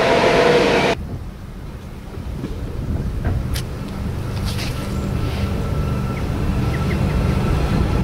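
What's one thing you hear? An electric train pulls in quietly, its wheels humming on the track.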